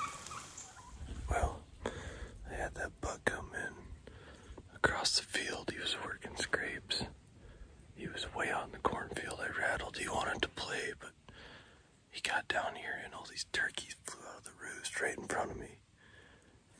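A man speaks quietly in a hushed voice, close by.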